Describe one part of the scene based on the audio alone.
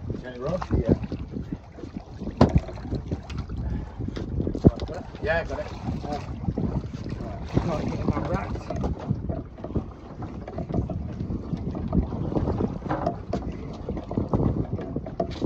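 Waves slap against a small boat's hull.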